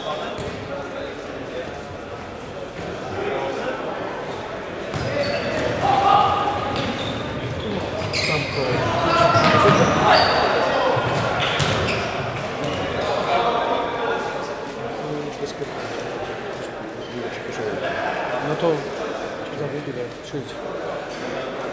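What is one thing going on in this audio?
A ball thumps as it is kicked.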